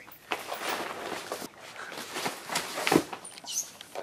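A body thuds onto a hard floor.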